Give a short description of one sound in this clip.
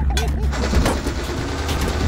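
A laser weapon fires with a buzzing zap.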